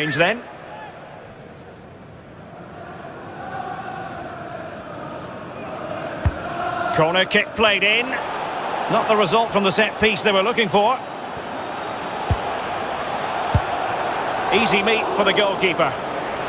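A large crowd roars and murmurs steadily in a stadium.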